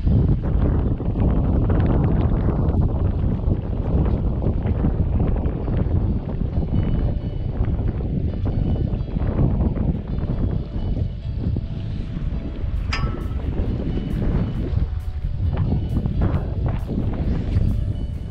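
Wind blusters loudly against a microphone outdoors.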